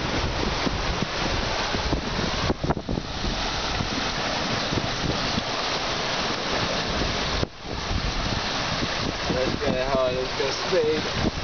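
Strong wind roars and buffets the microphone outdoors.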